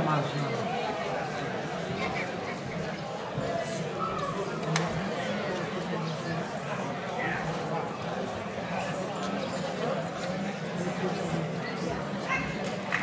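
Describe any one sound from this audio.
A crowd of people chatters outdoors at a distance.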